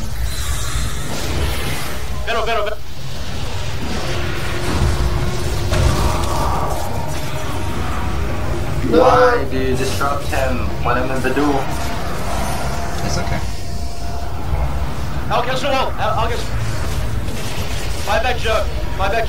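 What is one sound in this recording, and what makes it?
Magic blasts and clashing weapons crackle and boom in a busy fantasy battle.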